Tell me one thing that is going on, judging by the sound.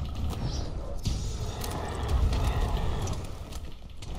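A large beast crashes and thrashes nearby with a deep rumble.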